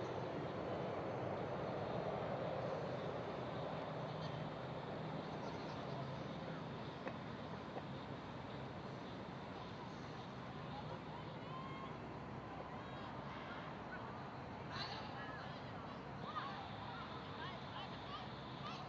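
A tiltrotor aircraft's rotors drone overhead and slowly fade as it moves away.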